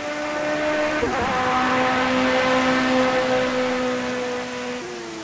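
A racing car's engine briefly dips in pitch as it shifts gear.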